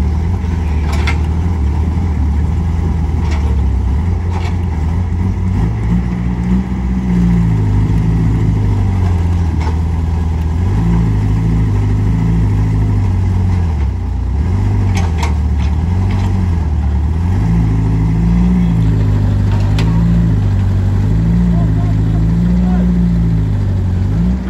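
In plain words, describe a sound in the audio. An excavator's diesel engine rumbles and revs up and down.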